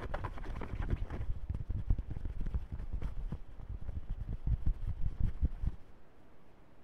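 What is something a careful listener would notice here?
Fabric rubs and scrapes loudly against a microphone up close.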